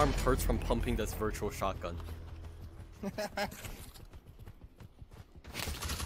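Boots thud on hard ground as soldiers run.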